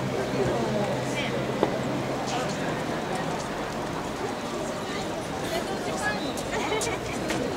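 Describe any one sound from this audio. A large crowd of men and women chatters and calls out all around, outdoors.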